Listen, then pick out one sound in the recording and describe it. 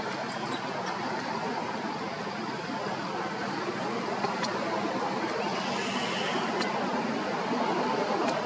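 Leaves rustle as a monkey moves among the branches.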